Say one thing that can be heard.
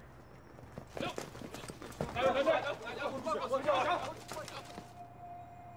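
Men shout and scuffle in a struggle outdoors.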